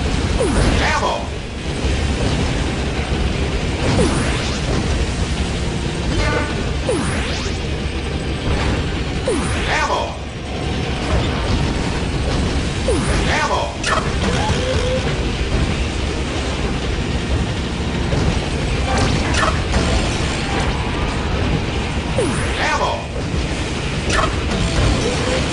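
Pickups chime with short bright whooshes.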